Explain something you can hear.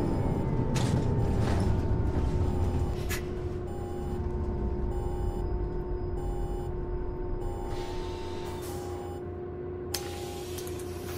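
A diesel city bus engine drones while driving along a road.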